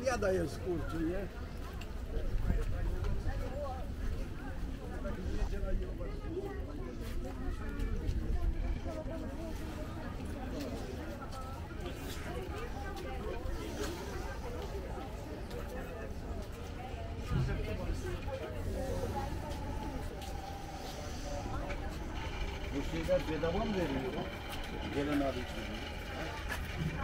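Footsteps walk on paving stones.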